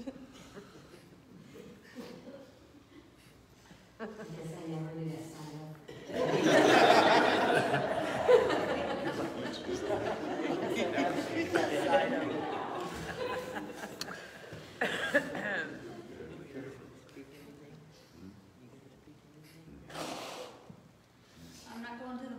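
A woman speaks calmly into a microphone in a large echoing room.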